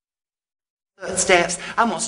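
A man speaks loudly with animation, in a theatrical voice.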